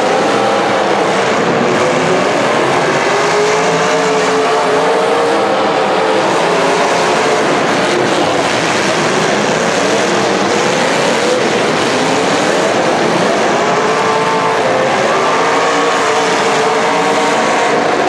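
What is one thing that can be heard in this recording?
Engines roar and rev loudly in a large echoing arena.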